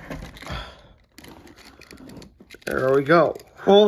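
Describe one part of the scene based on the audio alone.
Plastic packaging crinkles and rustles as a toy car is handled.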